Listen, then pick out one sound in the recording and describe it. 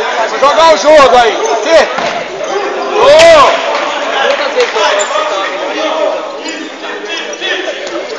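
A crowd of spectators chatters and cheers in the background.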